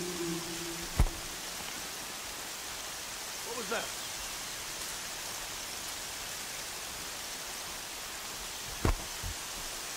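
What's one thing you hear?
A thrown rock lands with a sharp knock.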